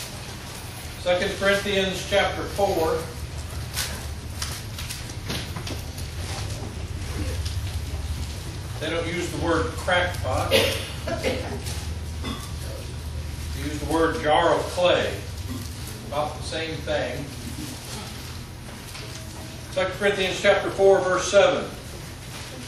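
A middle-aged man speaks calmly in pauses, in a room with a slight echo.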